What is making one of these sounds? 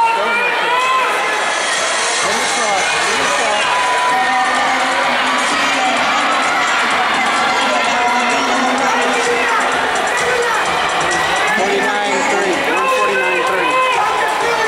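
A large crowd chatters and calls out in a big echoing indoor hall.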